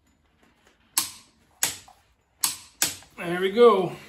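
Metal tools clink and clatter against engine parts.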